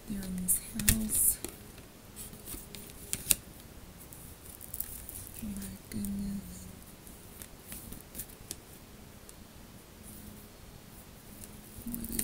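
A young woman speaks softly and calmly, close by.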